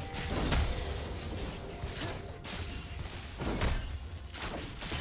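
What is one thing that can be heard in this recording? Game characters clash with rapid hits.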